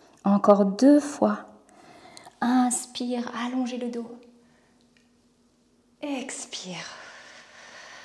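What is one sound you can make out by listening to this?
A young woman speaks in a lively voice close by.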